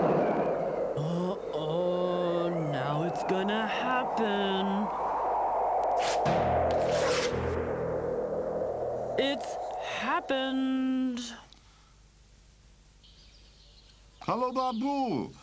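A man speaks in an animated cartoon voice.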